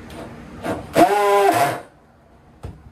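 A cordless drill whirs briefly.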